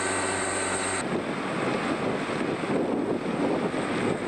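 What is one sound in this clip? A harvester engine rumbles.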